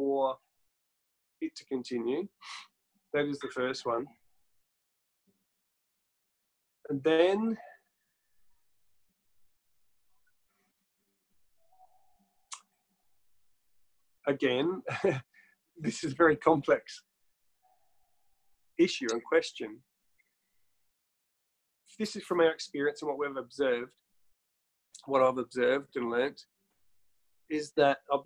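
A man talks calmly and closely into a microphone, in short bursts with pauses.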